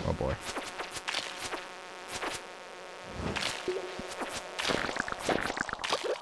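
A sword swishes through the air in quick strokes.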